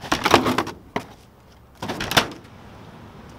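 A metal dumpster lid bangs shut.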